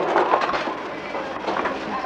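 Glass jars clink together.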